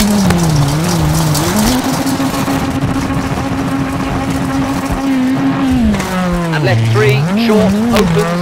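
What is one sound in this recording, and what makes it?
Tyres crunch and skid on loose gravel.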